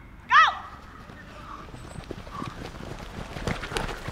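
Football players run across grass.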